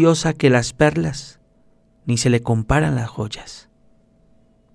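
A young man reads aloud calmly into a microphone.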